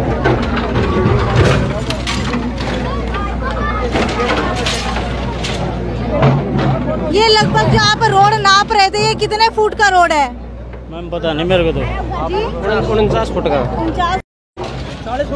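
Men in a crowd shout and talk loudly nearby.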